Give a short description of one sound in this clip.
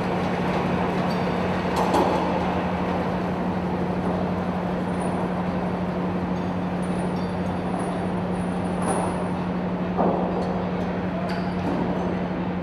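Vehicle tracks clatter on a steel deck.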